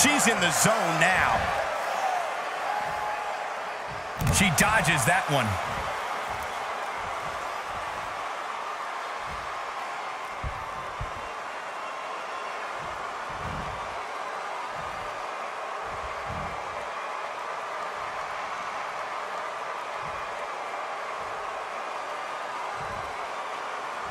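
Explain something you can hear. A large crowd cheers steadily in a big echoing arena.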